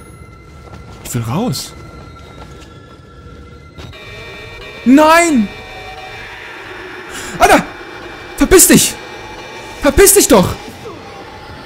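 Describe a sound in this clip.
A young man exclaims loudly and excitedly into a close microphone.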